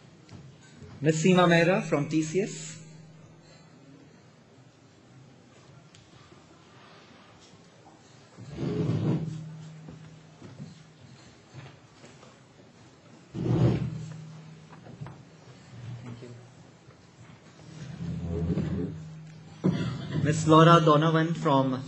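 A young man speaks into a microphone over loudspeakers in a large echoing hall, with long pauses.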